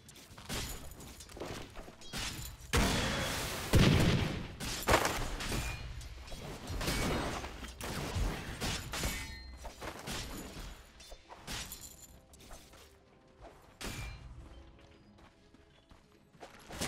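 Magic blasts and impacts crackle and burst in quick succession.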